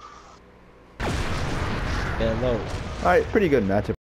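A heavy blast rumbles and crashes.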